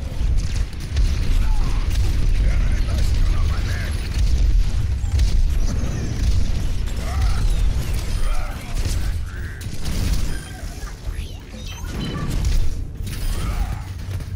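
Video game explosions boom and crackle.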